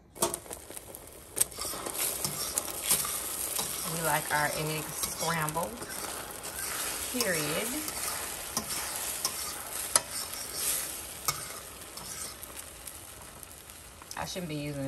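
A fork scrapes and taps against a pan while stirring eggs.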